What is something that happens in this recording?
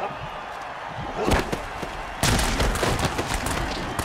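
Football players collide with loud thuds.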